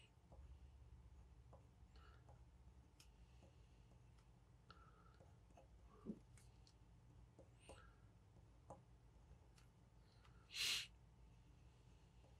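A dip pen nib scratches faintly across paper.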